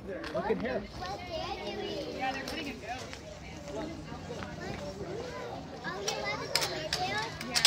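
A man talks calmly to a small child nearby.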